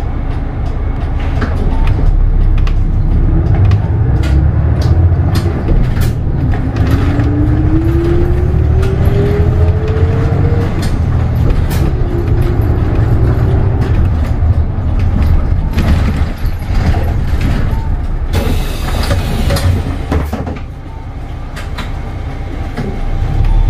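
The bus body rattles and clicks over the road.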